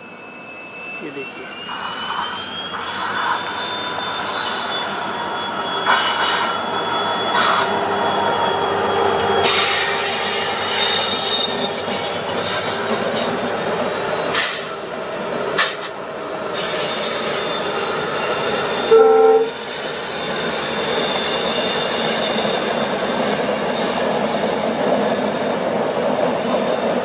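A diesel locomotive hums and rumbles as it approaches and passes.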